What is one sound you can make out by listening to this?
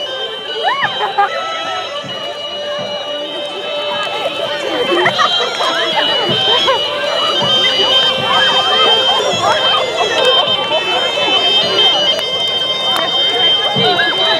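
A crowd of men and women talk and call out outdoors.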